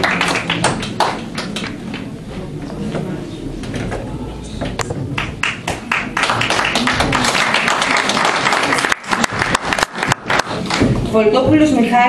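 An audience applauds in a room.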